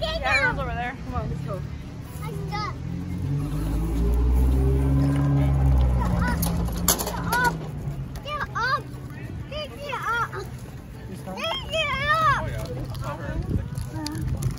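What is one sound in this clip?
A young boy talks in a high voice nearby.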